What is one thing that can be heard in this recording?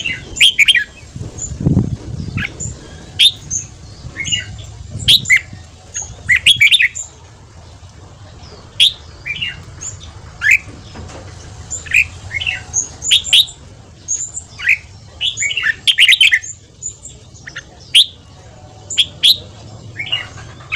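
A small bird chirps and whistles sharply in short bursts close by.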